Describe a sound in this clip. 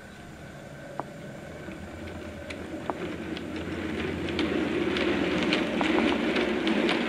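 Wheels click over rail joints.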